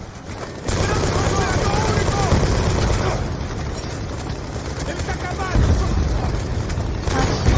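A rifle fires in rapid, loud bursts close by.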